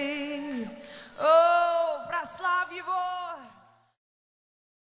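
A crowd of people sings together.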